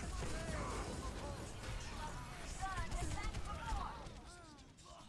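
Gunfire and explosions crackle in a video game battle.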